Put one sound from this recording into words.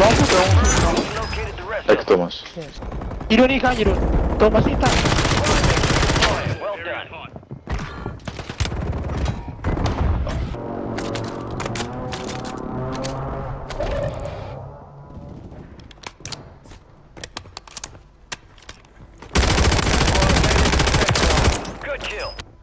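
A rifle fires in rapid bursts of gunshots.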